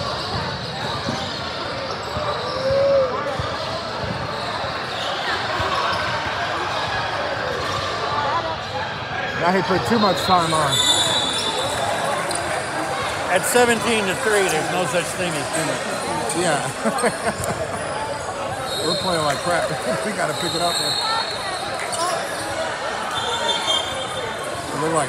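A crowd of young people chatters and calls out in a large echoing gym.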